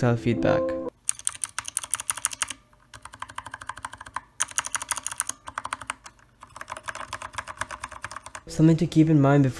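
Mechanical keyboard keys click rapidly as a finger presses them.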